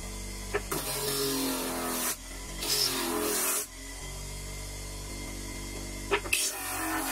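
Wood grinds in short bursts against a spinning sanding drum.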